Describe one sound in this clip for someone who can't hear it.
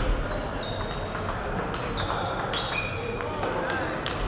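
A ping-pong ball clicks quickly back and forth off paddles and a table.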